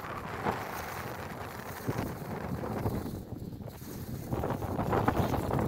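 Wind buffets and gusts across an open hillside.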